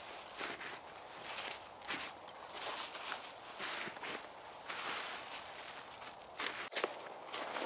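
Dry leaves rustle and crackle as a man gathers them from the ground.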